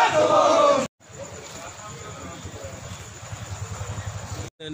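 Men murmur and talk quietly in a crowd outdoors.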